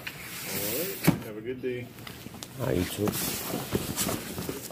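A cardboard box thumps and scrapes as it is handled.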